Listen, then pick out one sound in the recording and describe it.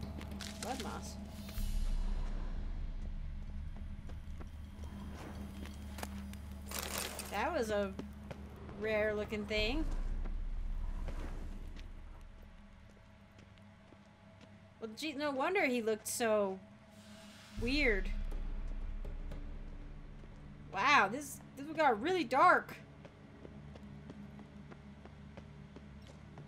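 Footsteps thud softly on a stone floor.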